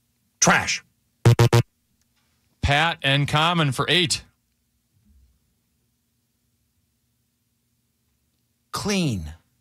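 A middle-aged man speaks with animation through a microphone, in short bursts.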